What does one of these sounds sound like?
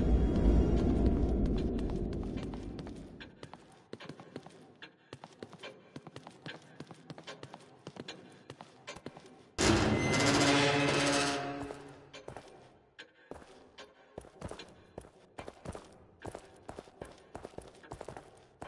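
Footsteps tread slowly on a hard floor.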